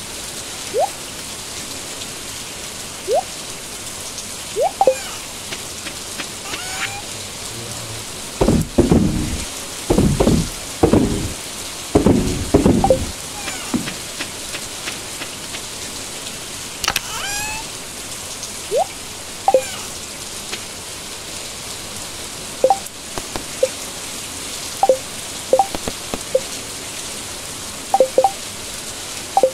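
Short menu blips sound now and then.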